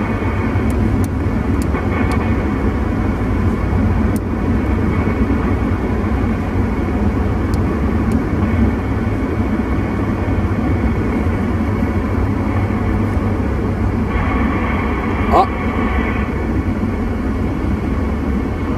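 Tyres rumble and hiss on a wet road inside a moving car.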